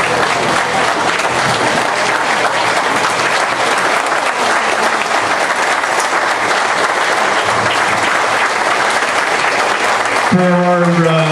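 A crowd applauds and cheers loudly in a room.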